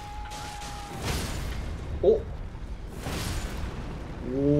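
Magic blasts explode with bursts of crackling sparks.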